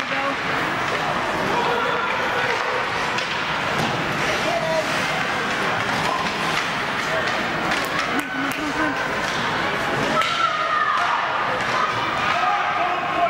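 A crowd murmurs in a large echoing rink.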